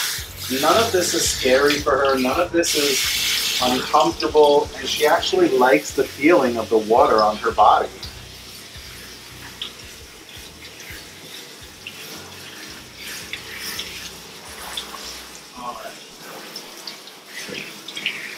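Water hisses from a hand-held shower head.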